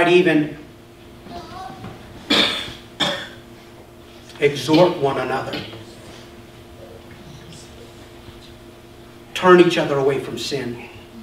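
A man speaks calmly through a microphone in a room with slight echo, pausing between phrases.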